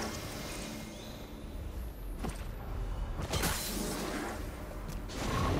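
A game character's footsteps patter along.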